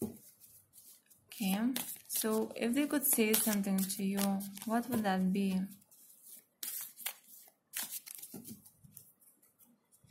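Playing cards riffle and flap as they are shuffled by hand.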